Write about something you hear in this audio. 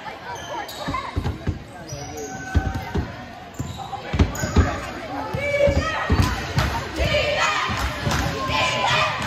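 A basketball bounces repeatedly on a wooden court in a large echoing gym.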